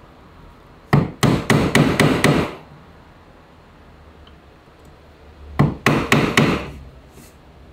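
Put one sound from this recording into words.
A chisel is tapped down into wood.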